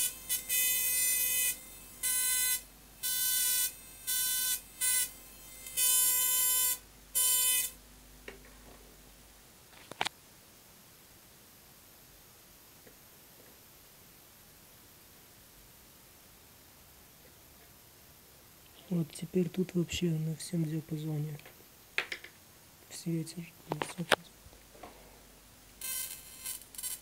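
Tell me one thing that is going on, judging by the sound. A high-voltage spark buzzes loudly in short, sharp bursts.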